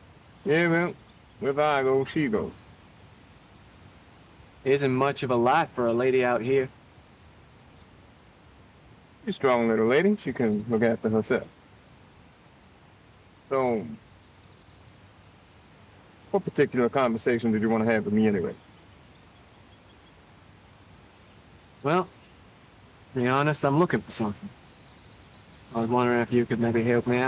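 A second man answers calmly and close by.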